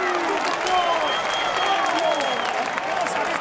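A referee's whistle blows a long, steady blast.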